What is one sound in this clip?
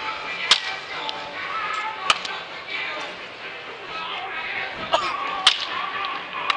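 A bat cracks sharply against a ball several times.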